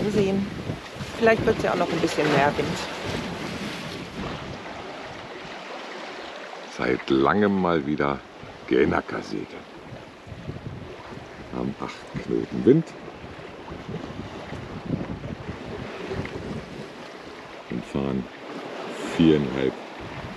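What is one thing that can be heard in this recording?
Water rushes and splashes against a sailing boat's hull.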